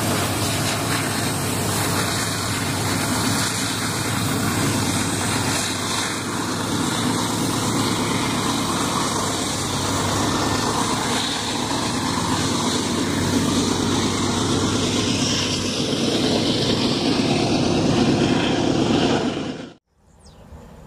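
A freight train rumbles and clatters past close by.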